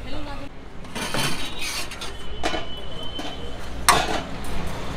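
A metal lid clanks against a large metal pot.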